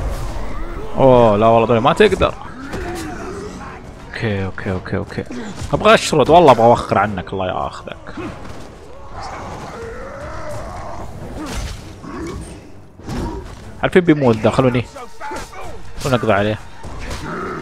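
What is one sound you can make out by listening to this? Brutish creatures roar and grunt.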